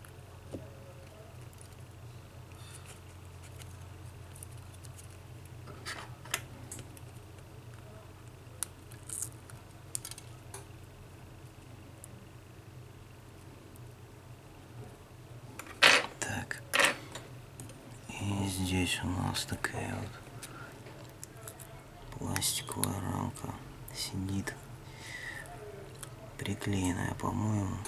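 Small metal parts click and tap as a phone is taken apart by hand.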